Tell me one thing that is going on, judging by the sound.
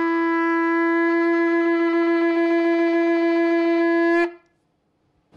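A ram's horn blows a long, steady, loud note close by.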